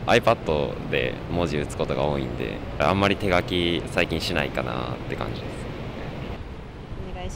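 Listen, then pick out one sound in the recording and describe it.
A young man speaks calmly into a handheld microphone close by.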